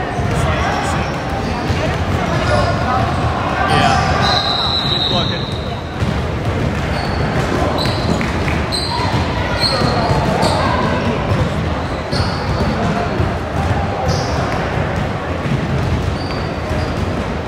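Children and adults shout and chatter in an echoing gym.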